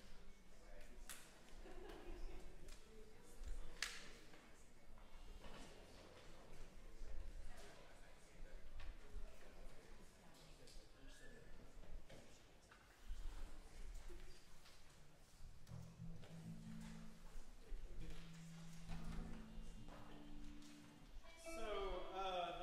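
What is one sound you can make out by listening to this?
A seated audience murmurs and chatters quietly in a large echoing hall.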